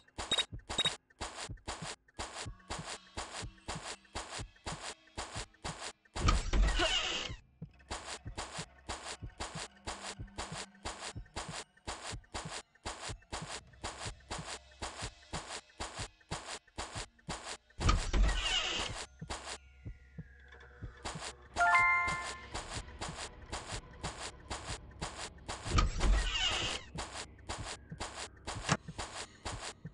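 Footsteps tap quickly and steadily on hard floors.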